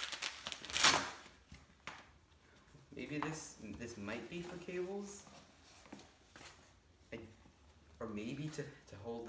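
Packaging rustles and crinkles in a boy's hands.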